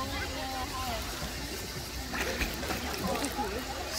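Water splashes loudly as someone jumps into a pool.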